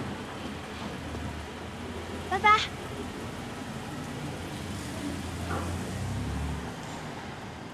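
A car engine hums as a car rolls slowly up.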